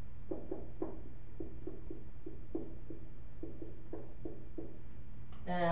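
A marker squeaks in short strokes on a whiteboard.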